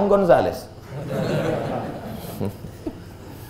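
A man laughs softly.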